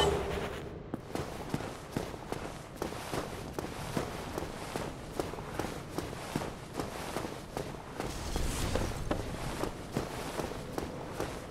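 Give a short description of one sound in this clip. Armoured footsteps clank steadily on stone.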